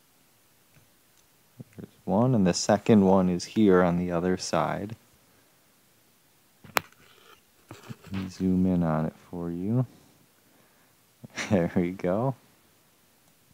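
A small screwdriver clicks and scrapes against a phone's metal frame.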